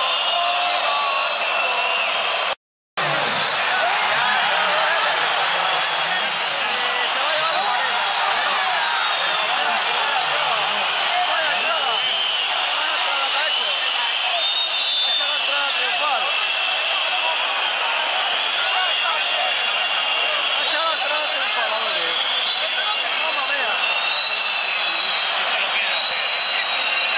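A large stadium crowd sings and chants loudly all around.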